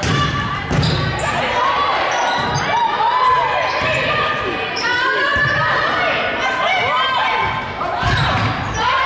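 A volleyball is hit with a thump.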